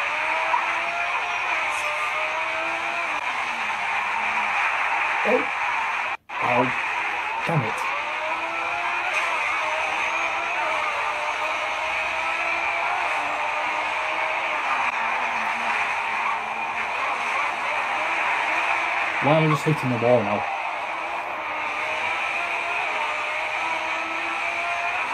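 A racing car engine whines and revs up and down through gear changes.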